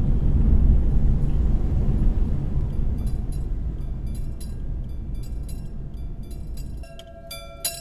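A train rumbles as it pulls away.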